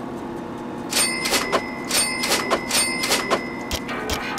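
Coins jingle brightly several times in quick succession.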